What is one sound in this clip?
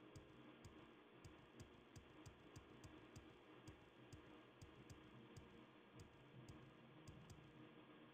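Footsteps thud steadily on soft ground.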